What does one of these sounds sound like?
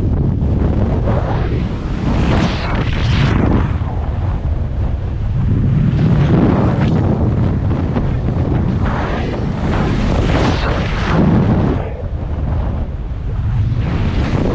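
Paraglider fabric flutters and flaps overhead.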